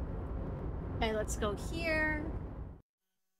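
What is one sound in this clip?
A young woman speaks briefly close to a microphone.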